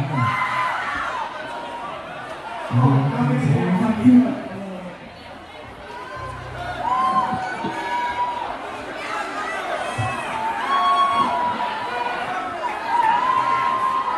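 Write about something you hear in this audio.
An electric guitar plays sustained notes through an amplifier.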